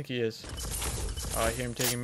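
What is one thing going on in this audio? A pickaxe swings and strikes wood.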